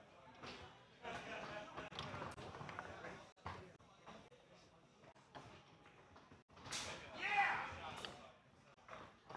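Foosball rods rattle and thud as players spin and slide them.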